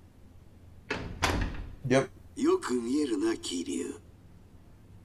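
A middle-aged man speaks slowly and with menace.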